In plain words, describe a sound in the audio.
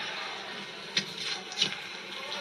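Feet scuff and thud on a mat.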